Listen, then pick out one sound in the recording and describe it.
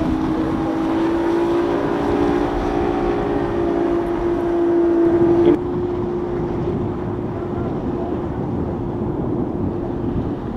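Water hisses and splashes against a speeding boat's hull.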